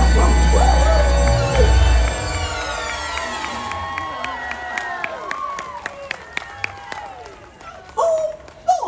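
Festive music with singing plays loudly over loudspeakers.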